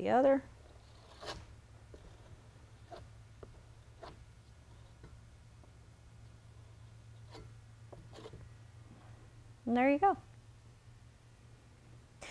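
A palette knife scrapes and taps softly on a canvas.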